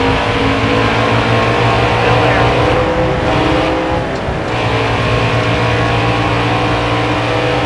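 Other race cars drone nearby.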